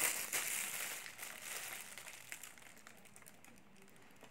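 A young woman bites and chews food with crunching sounds.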